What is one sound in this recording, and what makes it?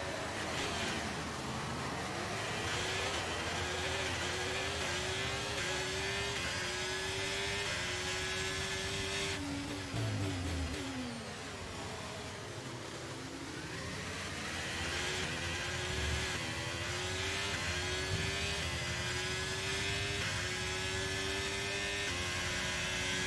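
A racing car engine roars, rising in pitch through quick gear changes.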